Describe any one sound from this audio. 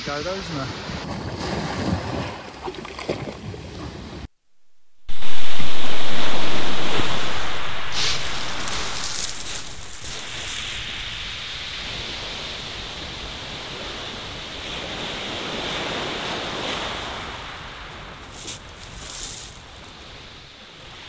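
Waves wash and break on a shingle beach.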